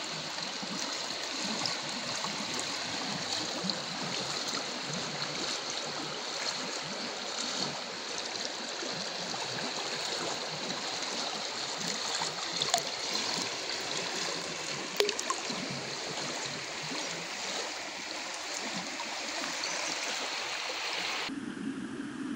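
A river rushes and burbles close by.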